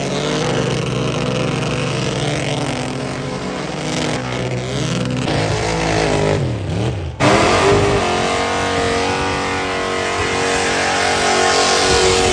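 A van engine roars loudly.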